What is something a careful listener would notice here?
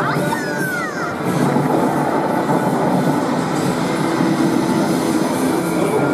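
Loud game explosions and gunfire rumble from an arcade machine.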